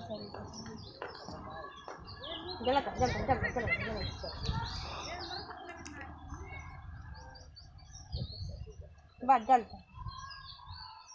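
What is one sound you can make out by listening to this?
Several women talk and chatter nearby outdoors.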